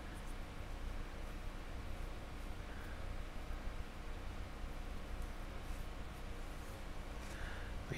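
Small objects are handled and rubbed close to a microphone.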